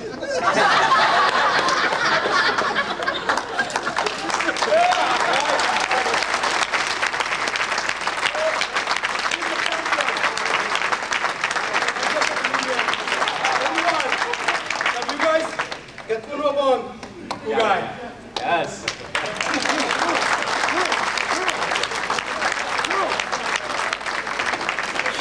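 A large crowd claps and cheers.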